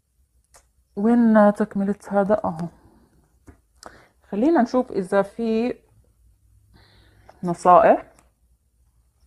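A young woman speaks calmly and close by, in short phrases.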